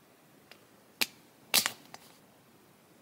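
A small plastic game cartridge clicks and taps as it is handled.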